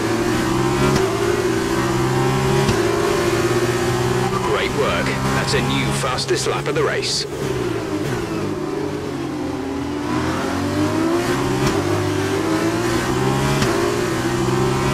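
A racing car engine screams at high revs, shifting gears up and down.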